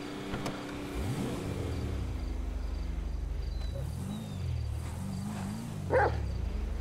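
A car engine starts and revs up and down.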